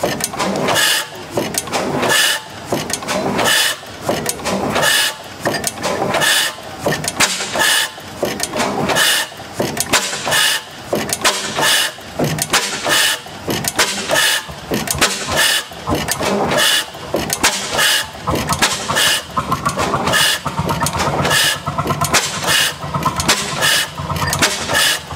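A large old gas engine runs with loud, regular hissing exhaust bursts.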